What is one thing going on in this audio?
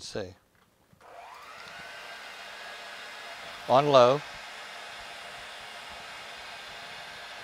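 An electric stand mixer starts up with a rising whine and then whirs steadily.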